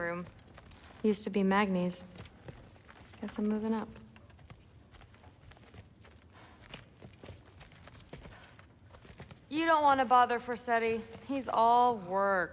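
A young woman speaks casually nearby.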